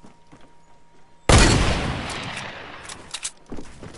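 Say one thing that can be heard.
A gun fires loudly in a video game.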